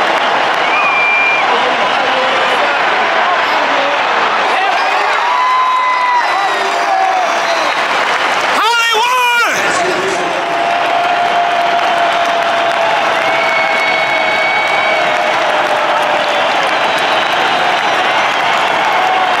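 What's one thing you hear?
A large stadium crowd roars and cheers loudly all around.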